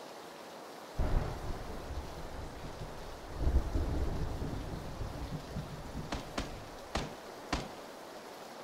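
Grass rustles as a soldier crawls through it.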